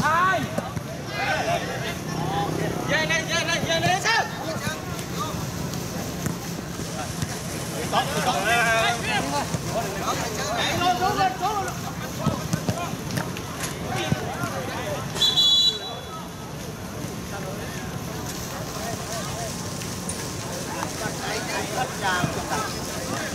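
A ball is kicked with dull thuds on an outdoor pitch.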